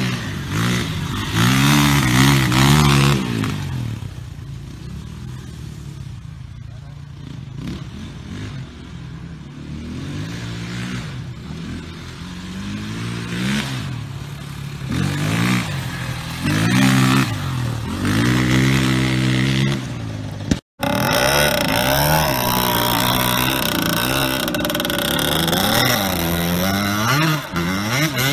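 A dirt bike engine revs and roars close by, rising and falling.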